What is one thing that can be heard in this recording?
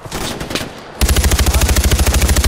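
A rifle fires in a rapid, loud burst.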